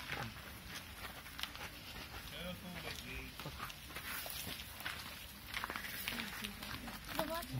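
Tall grass rustles as an animal moves through it.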